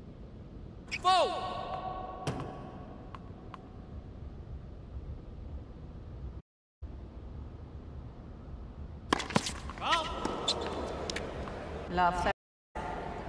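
A tennis racket strikes a ball.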